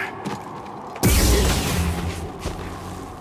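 A sword-like energy blade swings with a loud whoosh.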